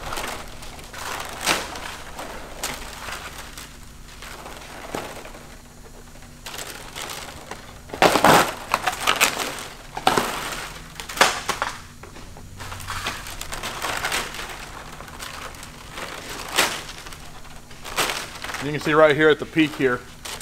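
Stiff metal strips rustle and clatter as a man handles them.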